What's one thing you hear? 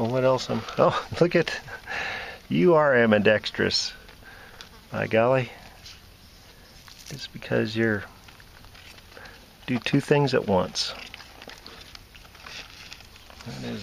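A tortoise shell scrapes against dry soil.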